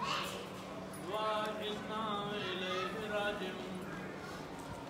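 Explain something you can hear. A young man chants in a slow, melodic voice nearby.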